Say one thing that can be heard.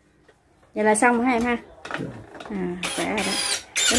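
A screwdriver scrapes and clicks against a screw.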